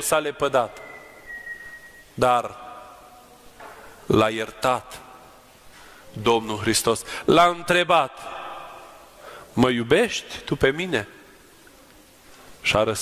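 A man chants in a deep, sung voice, with pauses between phrases, echoing in a large hall.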